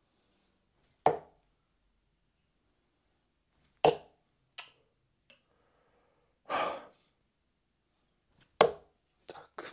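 Darts thud into a dartboard.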